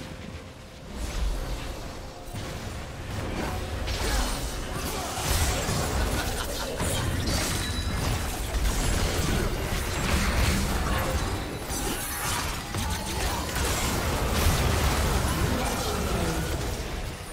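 Spell blasts and impacts crash and whoosh in a game battle.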